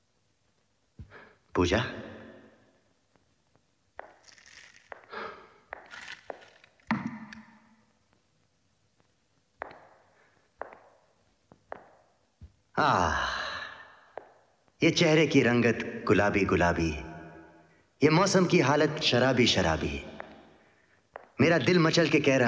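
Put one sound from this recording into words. A young man sings loudly and with feeling, close by.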